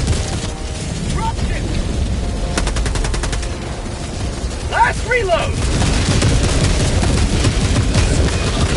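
Explosions rumble deeply and steadily.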